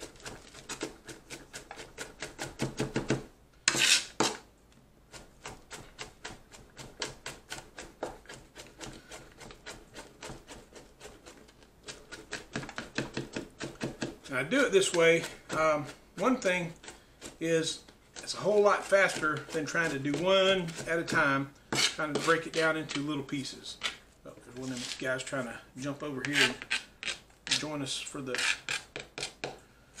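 A knife chops rapidly on a cutting board.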